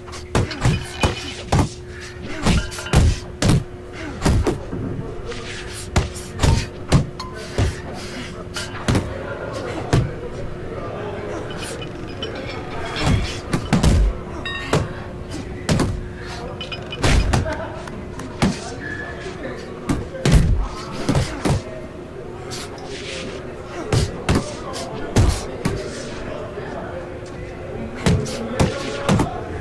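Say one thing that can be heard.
Boxing gloves thump against a body and gloves in quick bursts.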